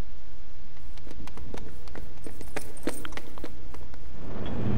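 Quick light thuds and taps sound as figures jump and land.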